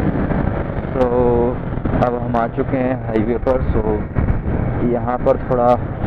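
A motorcycle engine blips and burbles while slowing down.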